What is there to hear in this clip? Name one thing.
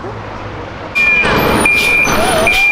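A large truck engine rumbles close by.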